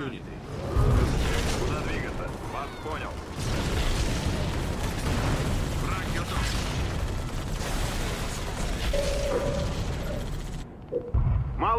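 Gunfire rattles in a battle.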